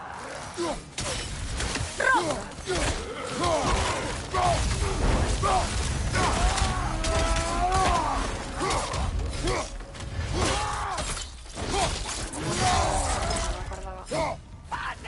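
Weapons clash and thud in a fierce fight.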